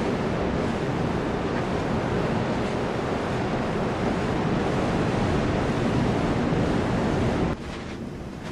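Water rushes and roars loudly close by.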